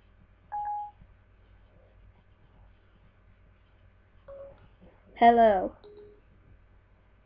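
A short electronic chime sounds a few times.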